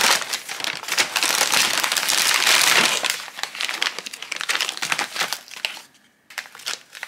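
A plastic wrapper crinkles and rustles loudly.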